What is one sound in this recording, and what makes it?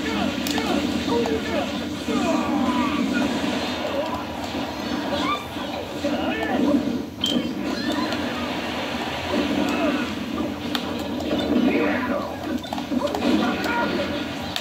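Video game fight sounds and music play from a television loudspeaker.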